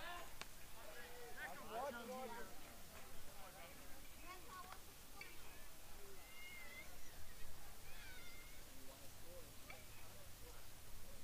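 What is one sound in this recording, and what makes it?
Young men call out to each other across an open field, heard from a distance.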